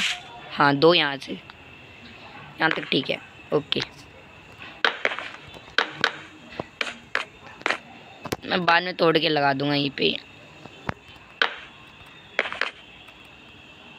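Wooden blocks are set down with soft hollow knocks.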